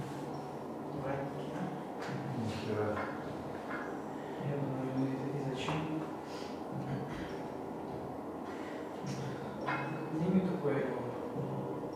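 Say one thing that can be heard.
A man talks calmly nearby in a room with a slight echo.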